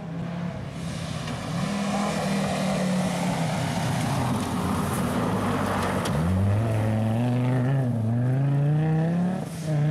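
Tyres spray gravel.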